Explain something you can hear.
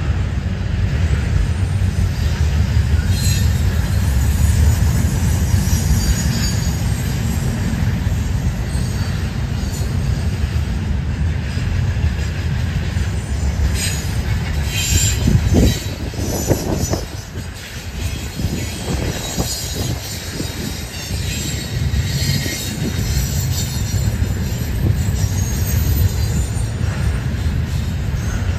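Wind blows outdoors and buffets the microphone.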